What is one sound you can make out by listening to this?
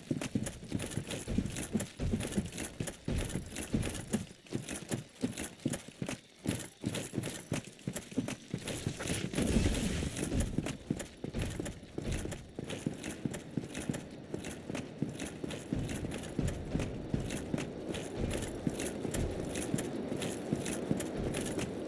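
Footsteps thud quickly on the ground as a figure runs.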